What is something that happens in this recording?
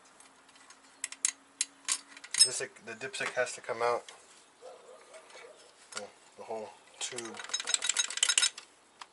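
Metal parts click and rattle under a wrench.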